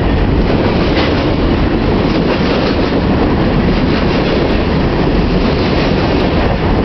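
A freight train rumbles loudly past close by.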